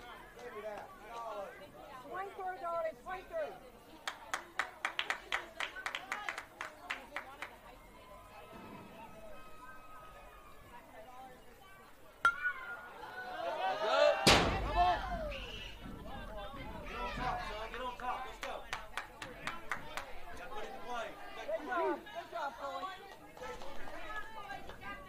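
Young players shout and cheer from across the field outdoors.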